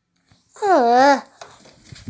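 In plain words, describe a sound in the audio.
Fabric rustles as a hand squeezes a plush toy close by.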